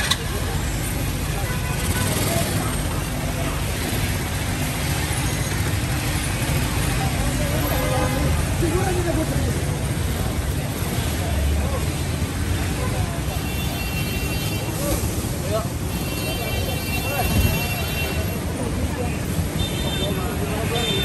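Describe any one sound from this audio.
Small electric vehicles hum past close by.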